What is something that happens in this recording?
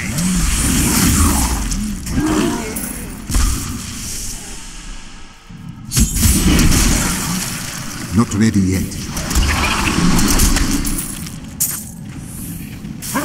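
Spells crackle and creatures screech in a fierce fight.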